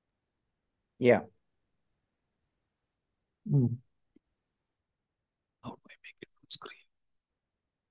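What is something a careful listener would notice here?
A man briefly speaks through an online call.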